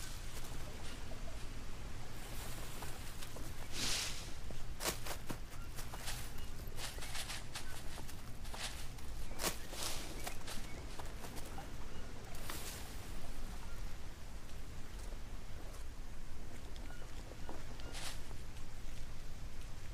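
Palm leaves rustle briefly as they are laid in place.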